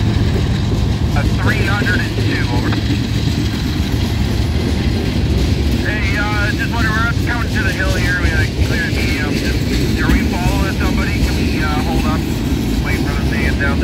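Train wheels squeal on the rails.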